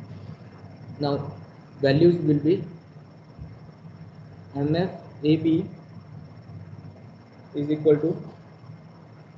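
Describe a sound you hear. A man speaks in short phrases through an online call.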